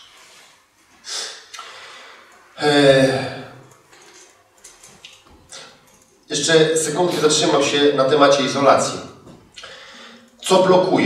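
A man speaks with animation in a large room, with pauses between phrases.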